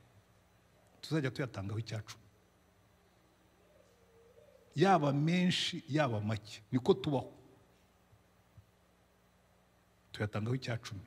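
An elderly man speaks slowly and with emphasis through a microphone, with pauses.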